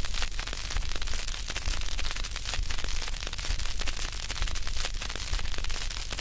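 A gramophone record crackles and hisses.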